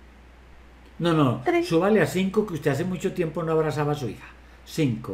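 An older man talks calmly over an online call.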